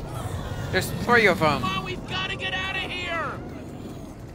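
A young man shouts urgently.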